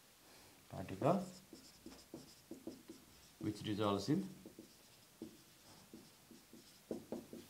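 A marker squeaks and taps against a whiteboard.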